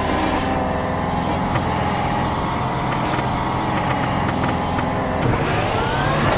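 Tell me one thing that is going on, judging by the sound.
A racing car engine idles with a low, steady rumble.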